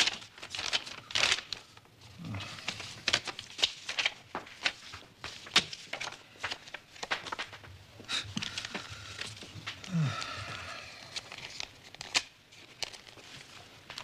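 Paper rustles and crinkles as a man unfolds a letter.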